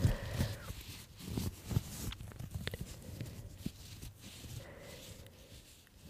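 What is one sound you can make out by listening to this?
A young woman makes soft mouth sounds close to a microphone.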